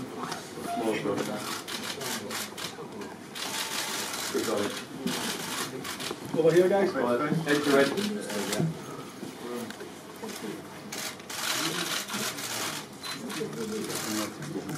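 Men talk nearby in a murmuring crowd.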